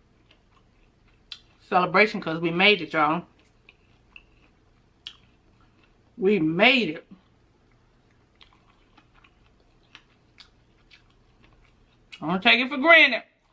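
Crispy fried chicken crunches and tears softly.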